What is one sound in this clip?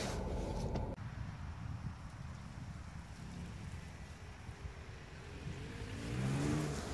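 A car engine hums as a car drives slowly.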